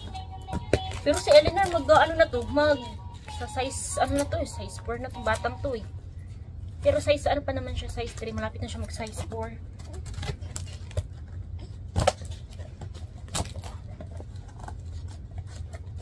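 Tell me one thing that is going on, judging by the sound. Plastic packaging crinkles and rustles as it is torn open.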